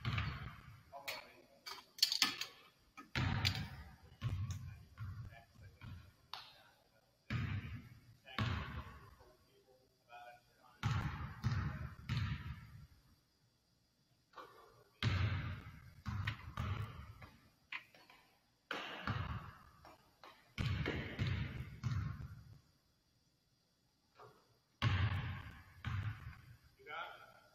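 A basketball is dribbled on a hardwood floor in a large echoing gym.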